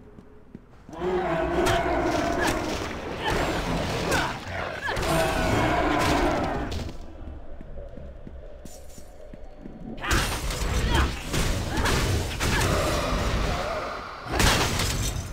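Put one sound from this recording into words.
Weapons clash and magic bursts crackle in a fight.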